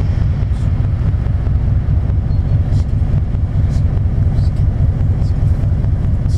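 A bus drives past with a low engine rumble.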